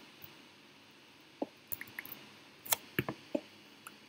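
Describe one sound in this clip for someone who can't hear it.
A pickaxe chips at stone with sharp taps.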